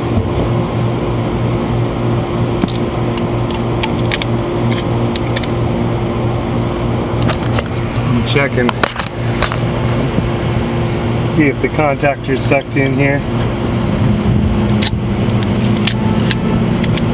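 An outdoor air conditioner unit hums steadily.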